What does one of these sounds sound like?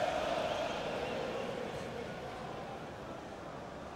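A stadium crowd cheers.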